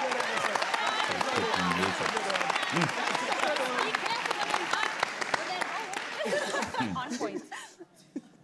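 A studio audience claps and cheers loudly.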